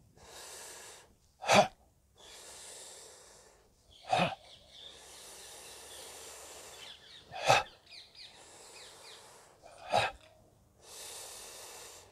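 A man breathes deeply and slowly, close by.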